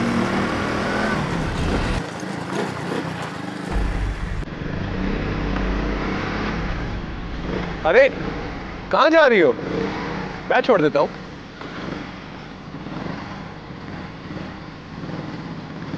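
A motorcycle engine putters as the bike rolls slowly closer over a dirt lane.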